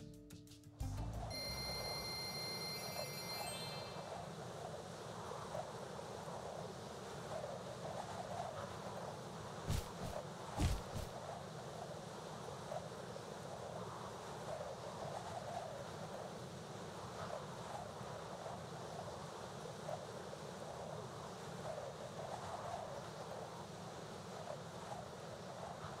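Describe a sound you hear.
A man talks calmly through a microphone.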